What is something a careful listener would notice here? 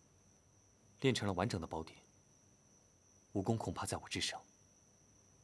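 A young man speaks quietly, close by.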